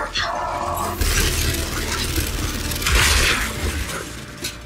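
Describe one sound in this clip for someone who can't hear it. An electric blast crackles and zaps.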